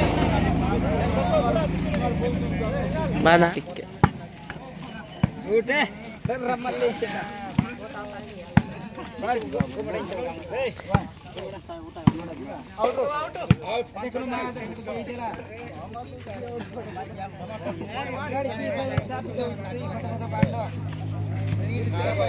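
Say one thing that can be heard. Young men call out and shout outdoors.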